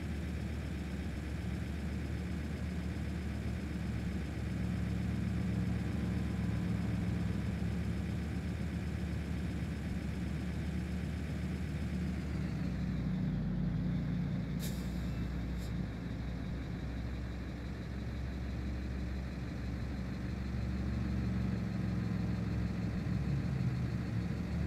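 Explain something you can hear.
A truck engine drones steadily as it drives along a motorway.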